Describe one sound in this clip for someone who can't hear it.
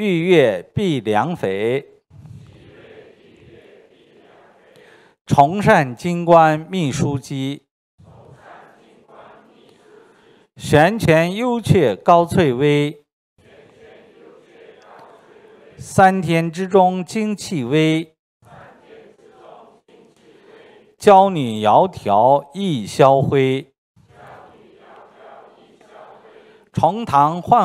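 A middle-aged man reads aloud into a microphone in loud bursts with pauses between them.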